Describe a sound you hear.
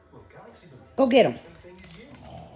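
A small dog barks sharply close by.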